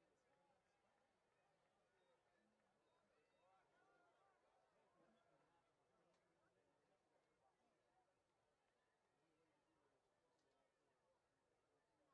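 A large crowd chatters and calls out at a distance outdoors.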